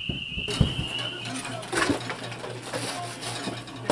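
A metal stove door clanks and rattles.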